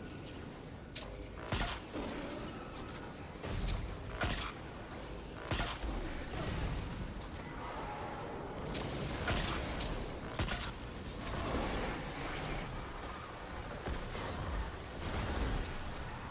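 Gunshots fire in sharp single bursts.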